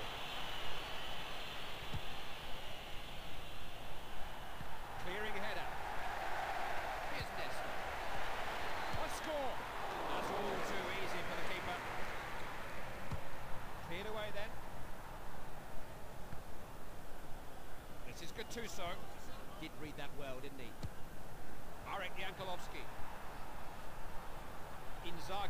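A stadium crowd cheers and roars steadily throughout.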